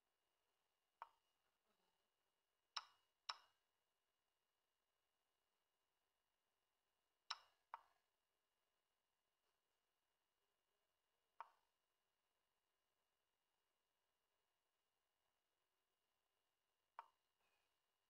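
Chess pieces click sharply into place, one short tap at a time.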